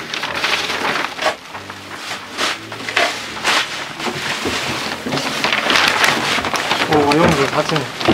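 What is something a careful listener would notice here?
Newspaper rustles and crackles as it is lifted and folded.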